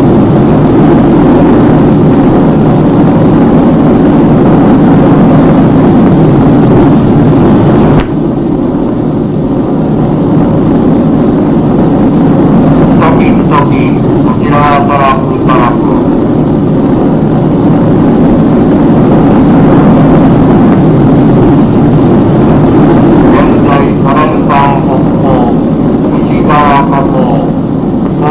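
Aircraft engines drone steadily overhead.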